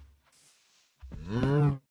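A cow moos loudly close by.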